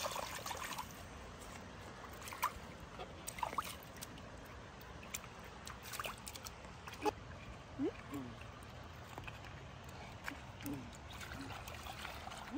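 A river flows gently nearby.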